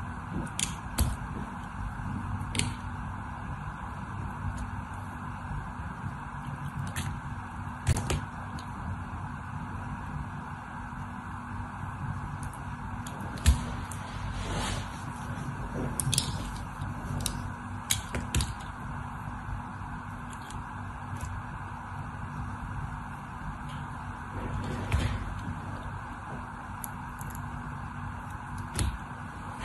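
Soap shavings crack and snap off.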